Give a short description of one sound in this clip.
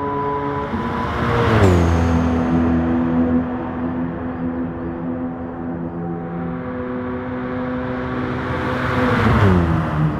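A car engine roars steadily, dropping in pitch as the car sweeps past.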